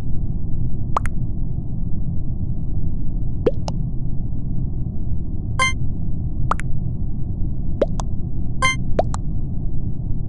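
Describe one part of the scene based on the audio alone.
Short electronic blips and pops sound now and then.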